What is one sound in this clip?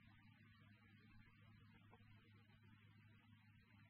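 A window creaks open.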